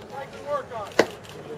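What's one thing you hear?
A pitched ball smacks sharply into a catcher's mitt.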